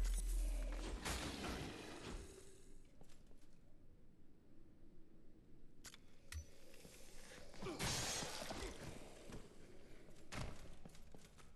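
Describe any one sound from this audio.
A sword strikes an enemy with a heavy thud.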